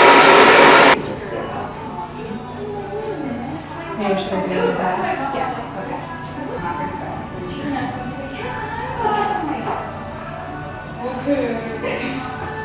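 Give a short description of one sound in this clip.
A woman talks calmly nearby.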